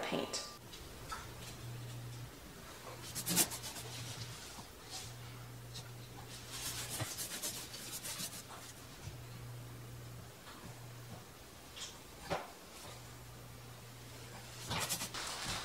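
A paint brush swishes softly against a wall.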